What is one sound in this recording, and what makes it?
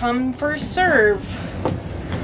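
A young woman speaks brightly and close by.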